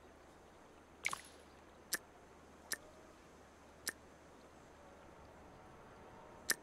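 Short game menu clicks and chimes sound.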